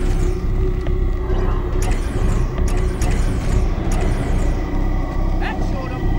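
Energy blasts burst and crackle nearby.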